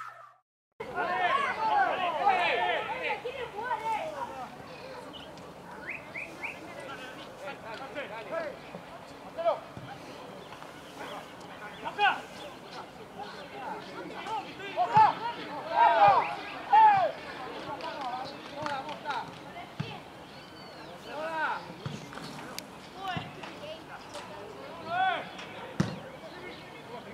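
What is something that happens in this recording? Young men shout and call out to each other across an open outdoor field.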